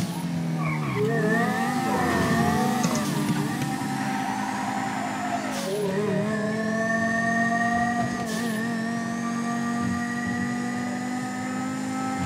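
A car engine roars and revs up through the gears, with short dips as it shifts.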